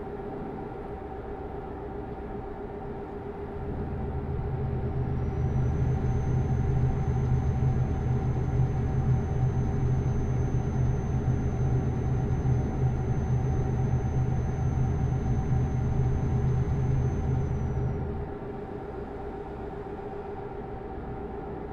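A truck engine hums steadily as it drives.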